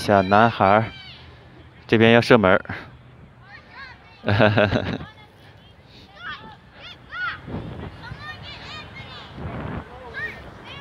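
Children shout and call out in the distance outdoors.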